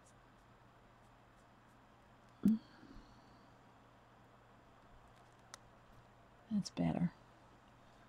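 A paintbrush dabs and scrapes lightly on a hard, smooth surface.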